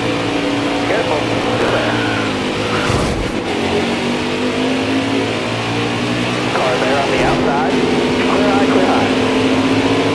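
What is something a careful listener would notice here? Other racing engines whine past close by.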